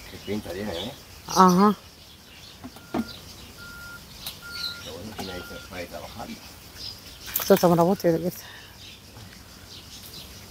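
Leaves rustle as a man reaches into a tree branch.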